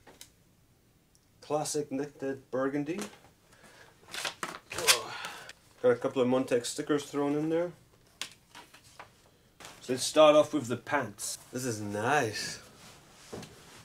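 Clothes rustle as a man handles them.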